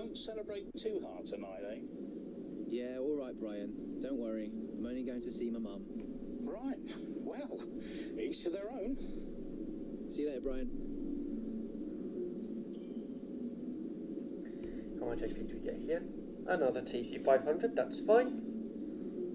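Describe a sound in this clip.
A young man talks casually into a headset microphone.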